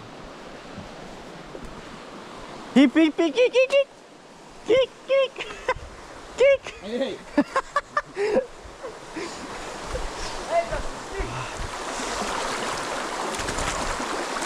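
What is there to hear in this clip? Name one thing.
A stream rushes and burbles over stones.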